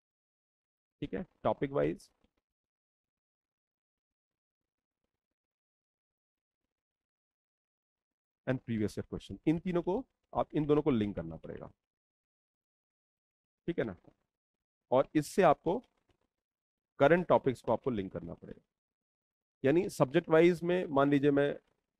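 A man speaks calmly into a close microphone, explaining in short bursts.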